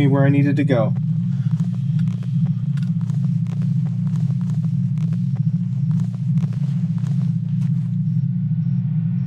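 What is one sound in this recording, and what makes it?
Boots clank on metal ladder rungs, step after step.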